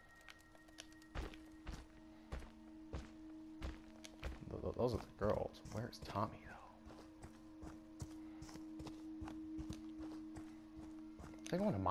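Heavy footsteps crunch along a dirt path.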